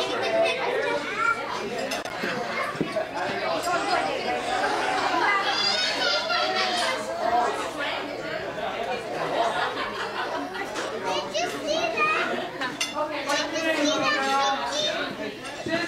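Children talk and shout excitedly close by.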